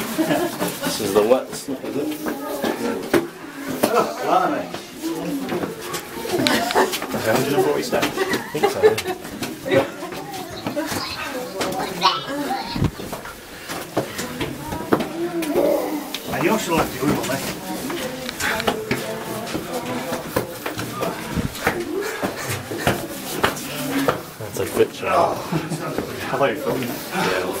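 Several adults talk and chatter nearby in a small echoing space.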